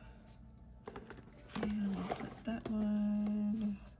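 Planner pages flip and rustle.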